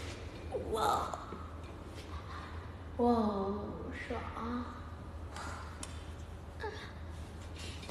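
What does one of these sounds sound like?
A young woman speaks and vocalizes playfully close to a microphone.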